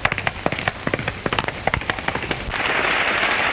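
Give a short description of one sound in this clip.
A horse gallops with rapid hoofbeats on dirt.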